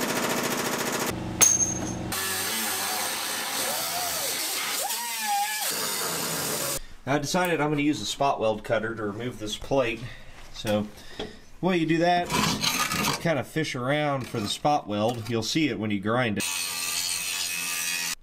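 An angle grinder whines loudly as it cuts metal.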